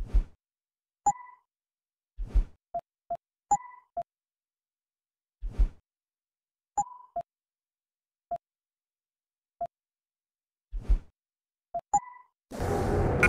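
Short electronic beeps and clicks sound now and then.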